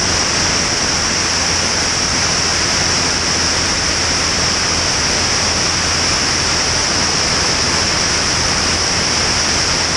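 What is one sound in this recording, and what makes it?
An airplane engine drones steadily.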